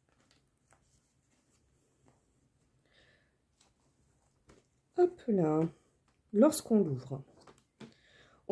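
Stiff paper rustles and taps softly as it is handled.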